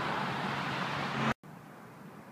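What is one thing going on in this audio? Freeway traffic roars steadily from a distance.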